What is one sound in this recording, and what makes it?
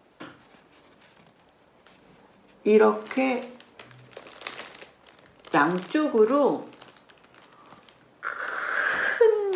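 A paper cake mould rustles in a woman's hands.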